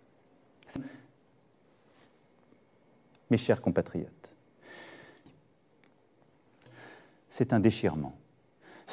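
A middle-aged man speaks calmly and formally into a close microphone, in short phrases with pauses.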